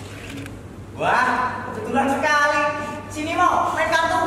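A young man speaks loudly, heard from a distance in a hall.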